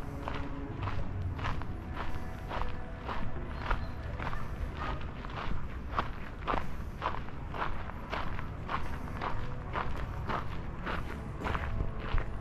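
Footsteps tread steadily on a paved path, close by.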